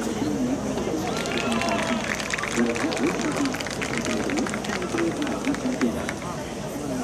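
Spectators clap rapidly.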